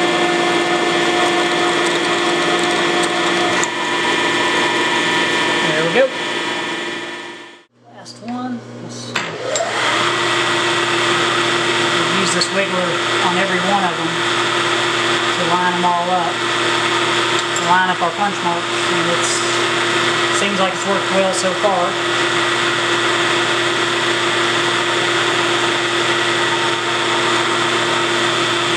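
A milling machine motor hums steadily.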